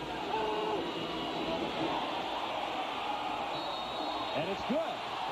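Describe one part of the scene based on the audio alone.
A large stadium crowd roars and cheers loudly.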